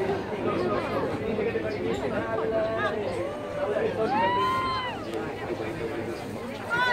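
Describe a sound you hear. A crowd of men and women chatter and call out nearby, outdoors.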